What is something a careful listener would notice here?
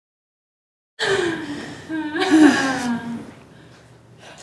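A woman speaks in a low, tense voice.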